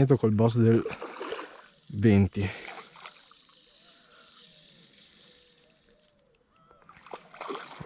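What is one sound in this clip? A fishing reel winds with a soft whirr.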